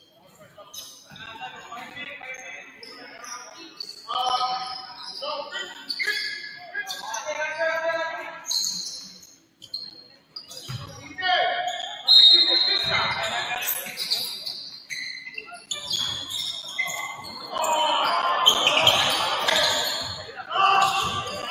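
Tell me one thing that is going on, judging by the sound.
Spectators cheer and shout in a large echoing gym.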